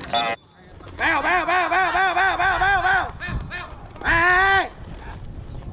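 Men shout loud calls outdoors.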